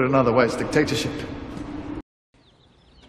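A man speaks calmly and seriously.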